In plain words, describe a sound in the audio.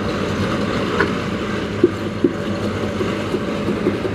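A metal pan scrapes and knocks against wood.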